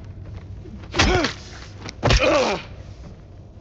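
A metal pipe strikes a body with heavy, wet thuds.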